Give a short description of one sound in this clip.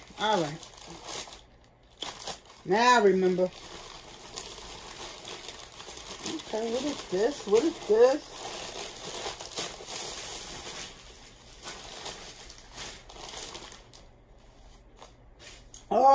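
Plastic wrapping rustles and crinkles as it is handled.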